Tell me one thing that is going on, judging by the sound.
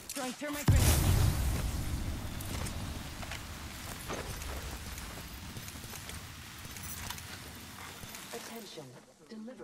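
Flames roar and crackle steadily, then die down.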